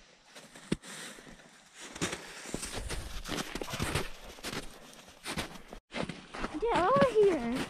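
Dogs' paws crunch through snow.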